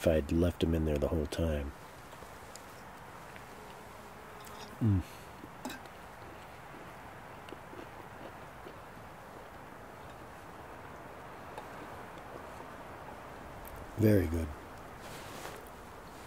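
A fork scrapes and taps against a metal pan.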